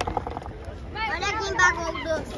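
A young boy talks excitedly close by.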